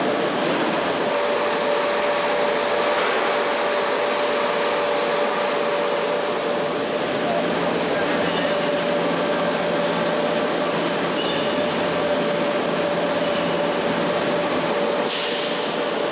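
Machinery hums steadily in a large hall.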